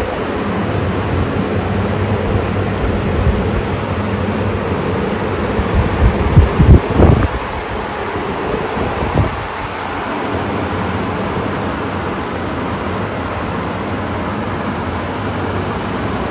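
Electric fans whir and hum steadily close by.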